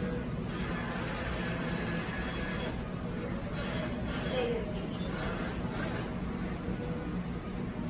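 A claw machine whirs as its claw moves.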